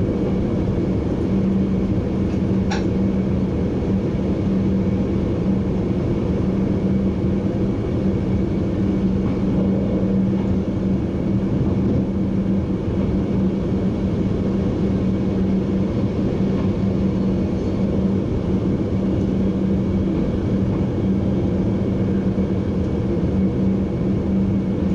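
A train rumbles steadily along the rails from inside the driver's cab.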